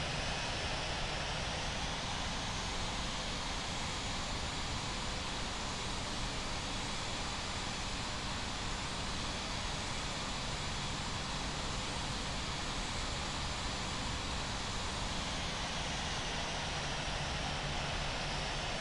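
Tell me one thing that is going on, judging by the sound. Jet engines hum and whine steadily.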